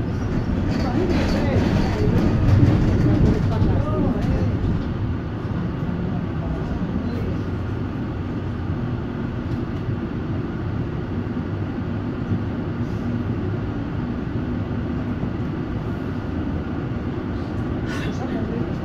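A tram engine hums steadily from inside the carriage.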